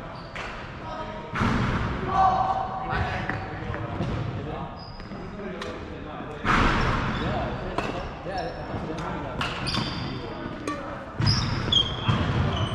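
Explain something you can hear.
Shuttlecocks are struck by badminton rackets with sharp pops in a large echoing hall.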